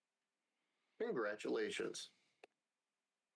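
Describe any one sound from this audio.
A man speaks briefly into a close headset microphone.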